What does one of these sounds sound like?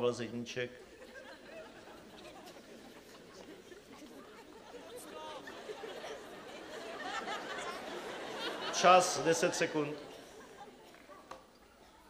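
A large crowd murmurs in a big hall.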